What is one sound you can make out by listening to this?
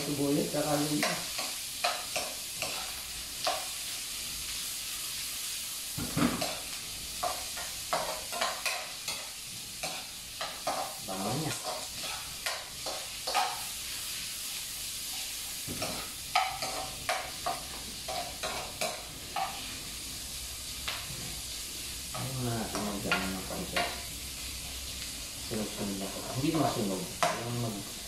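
A spatula scrapes and clicks against a frying pan.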